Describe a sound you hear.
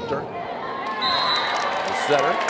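A referee's whistle blows shortly.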